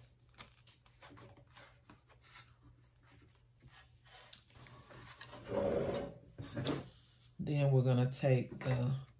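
Plastic packaging crinkles and taps as it is handled.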